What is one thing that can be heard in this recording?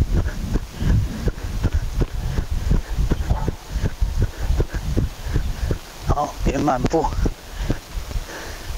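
A horse trots close by, its hooves thudding on soft ground.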